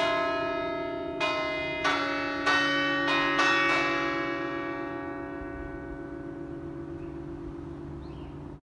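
Church bells ring out from a tower, then slowly fade and hum away.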